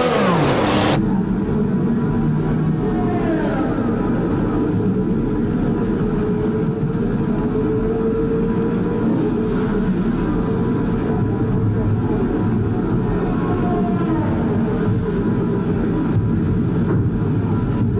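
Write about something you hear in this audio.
A racing car engine idles with a low rumble.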